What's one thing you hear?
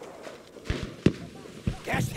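A rifle shot cracks sharply.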